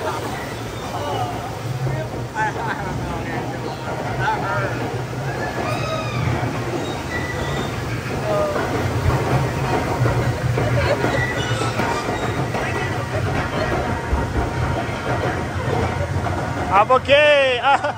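A lift chain rumbles and clatters steadily under a ride boat.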